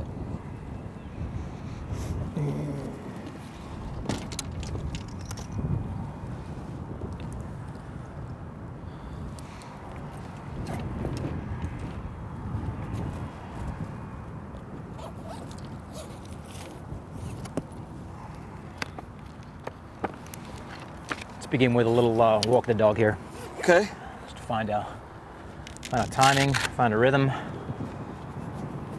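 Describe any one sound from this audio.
Golf clubs clink and rattle in a bag.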